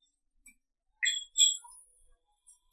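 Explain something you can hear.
A cue strikes a billiard ball.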